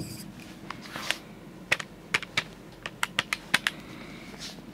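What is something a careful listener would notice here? Calculator keys click as a man presses them quickly.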